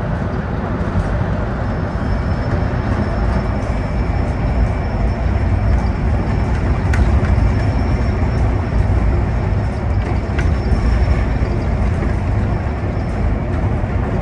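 A bus body rattles and clicks now and then.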